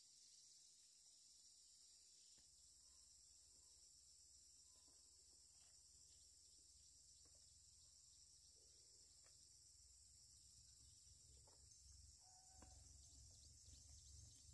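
Leafy plants rustle softly nearby.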